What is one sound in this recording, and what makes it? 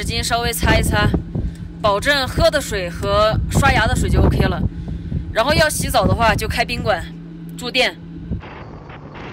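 A young woman talks close up, with animation.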